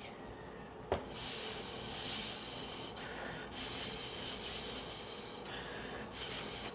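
A girl blows air through a straw in long breathy puffs.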